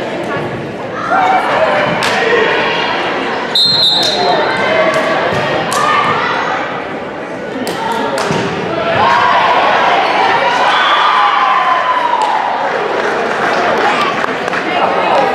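Teenage girls shout and cheer in a large echoing gym.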